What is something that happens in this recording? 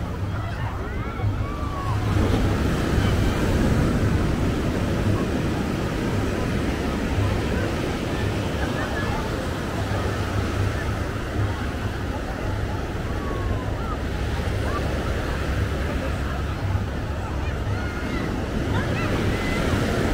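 A crowd of people talks and calls out in the distance.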